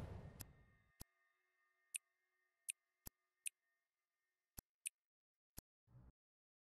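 Short game menu clicks sound as options change.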